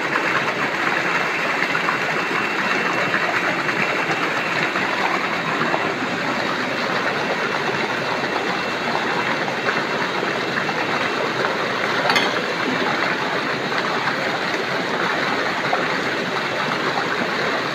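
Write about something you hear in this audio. Fish splash and thrash in shallow water.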